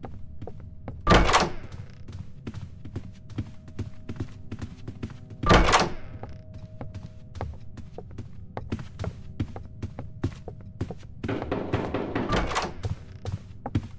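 A wooden door swings open with a loud rush.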